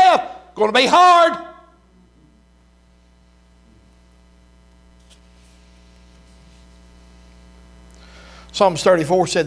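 A middle-aged man speaks calmly through a microphone in a large echoing room, pausing between phrases.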